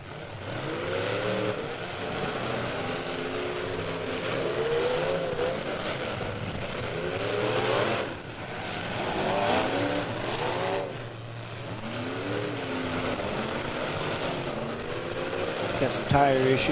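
Car engines roar and rev loudly outdoors.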